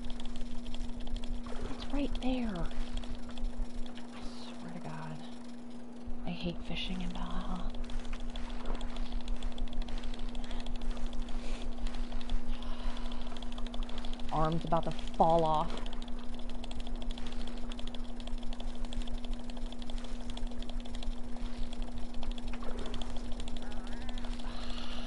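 Sea water laps and splashes steadily.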